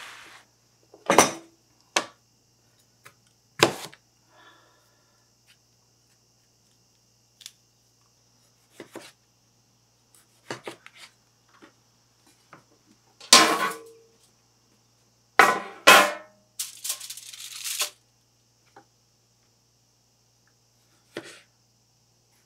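A knife chops through tomatoes onto a wooden board with sharp knocks.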